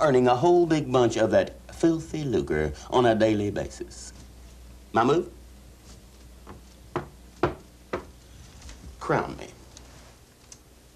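A man speaks animatedly, close by.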